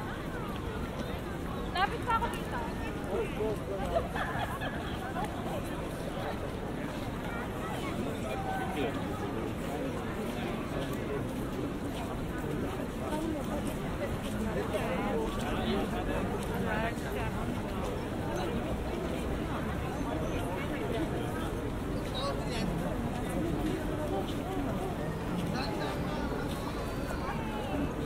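Footsteps shuffle on stone paving.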